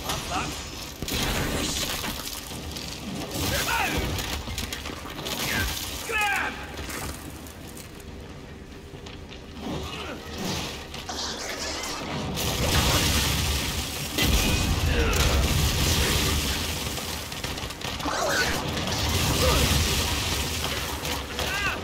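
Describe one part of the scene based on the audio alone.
A heavy weapon swings and strikes with thuds.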